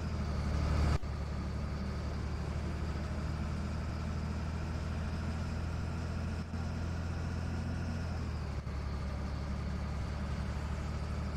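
Tyres roll on a smooth road.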